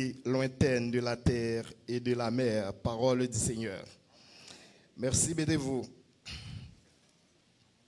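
A man speaks with animation into a microphone, heard through a loudspeaker in an echoing hall.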